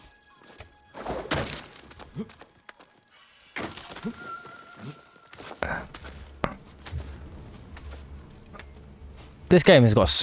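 Cloth rustles and hands scrape against rock during a climb.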